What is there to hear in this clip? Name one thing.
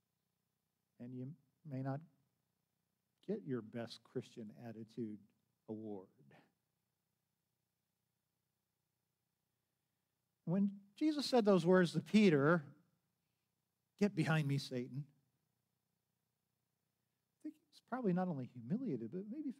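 An elderly man speaks calmly through a microphone, with pauses.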